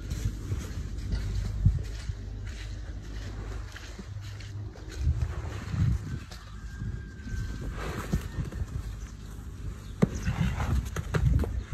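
A horse rolls and thrashes in wet mud.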